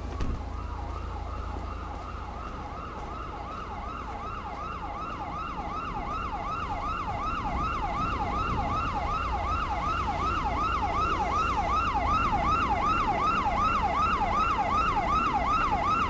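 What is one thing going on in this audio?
An ambulance siren wails rapidly, growing louder as it approaches.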